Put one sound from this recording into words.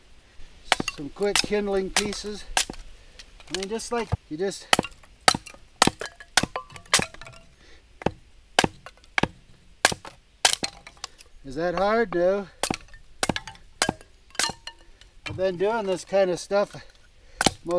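A hatchet splits and chops wood with sharp knocks.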